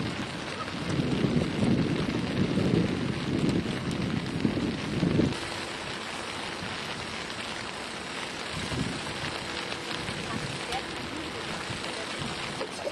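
Rain patters steadily on wet pavement.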